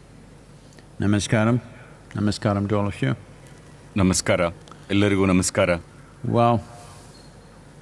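An elderly man speaks slowly and calmly into a microphone.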